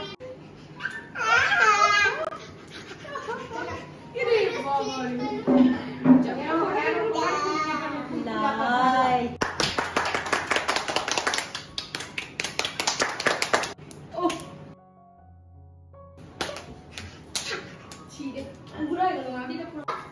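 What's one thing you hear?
A woman laughs cheerfully up close.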